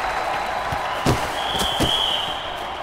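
Players' boots thud against a football on a pitch.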